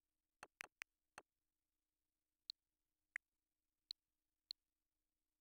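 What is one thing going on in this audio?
Short, crisp menu clicks and blips sound several times.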